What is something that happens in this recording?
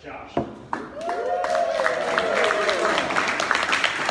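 A crowd of young men and women cheers and whoops.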